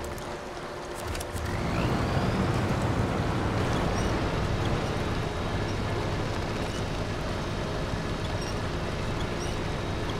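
A heavy truck engine rumbles and strains.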